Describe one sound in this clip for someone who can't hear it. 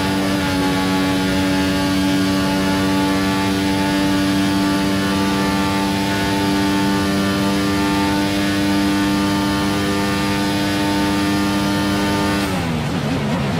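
A racing car engine screams at a high, steady pitch.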